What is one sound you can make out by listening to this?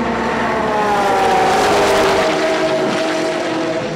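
A race car roars past at speed.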